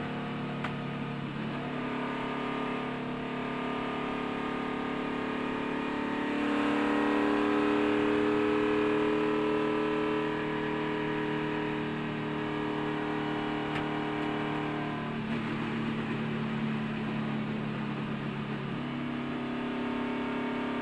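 Wind rushes past the car.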